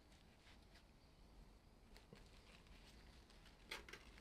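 A small spatula scrapes softly across icing.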